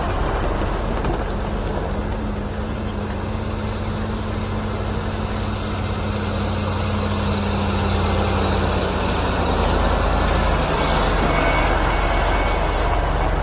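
A second heavy truck engine rumbles as it approaches and passes close by.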